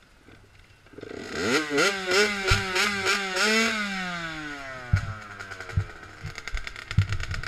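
A small motorbike engine starts, revs loudly and settles to an idle.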